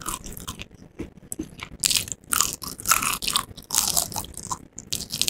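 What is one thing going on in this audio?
Close crunchy bites into fried food.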